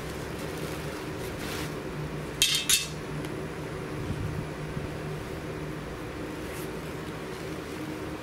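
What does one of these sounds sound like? Carpet rustles and flops as it is lifted and pulled aside.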